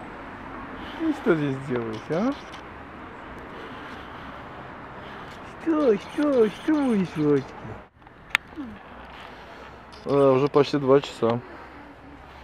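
A puppy whimpers and whines close by.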